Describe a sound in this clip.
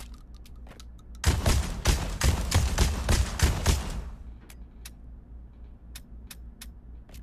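Small metal clicks sound from handling a pistol.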